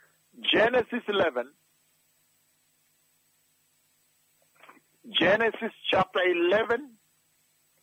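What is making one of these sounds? A man preaches forcefully into a microphone, in bursts with pauses.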